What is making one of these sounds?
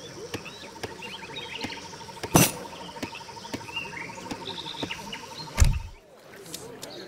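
Axes chop wood with sharp, regular knocks.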